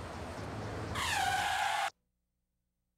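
Car tyres screech loudly.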